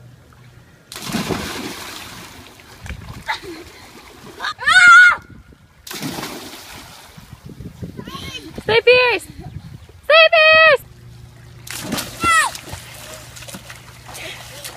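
Water splashes as someone jumps into a pool.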